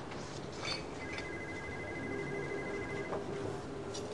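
A desk phone rings with a steady electronic tone.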